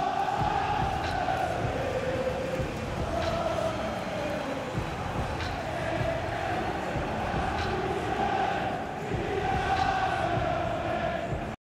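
A large stadium crowd sings a slow chant together.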